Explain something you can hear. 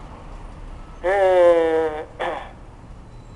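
A man sings loudly nearby.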